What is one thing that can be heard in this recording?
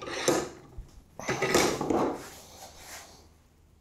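Wooden pieces knock and clatter together.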